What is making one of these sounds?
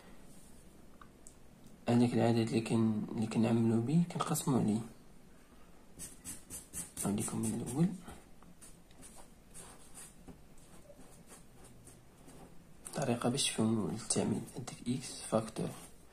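A felt-tip marker writes on paper.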